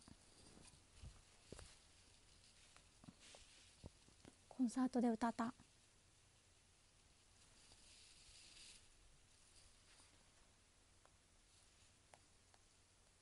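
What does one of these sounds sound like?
Fingers tap and brush against a phone's microphone.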